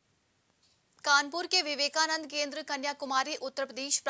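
A young woman speaks clearly into a microphone, reading out.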